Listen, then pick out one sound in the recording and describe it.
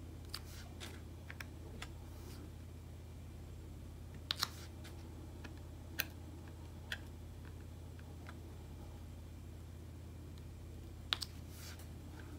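Small plastic beads click softly as they are picked up and pressed into place.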